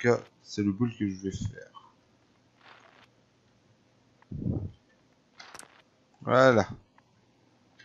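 A man talks calmly into a microphone in short bursts.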